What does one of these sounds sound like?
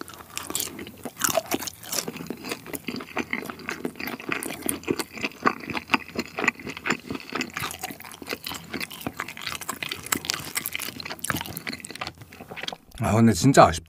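A young man chews food noisily and wetly, close to a microphone.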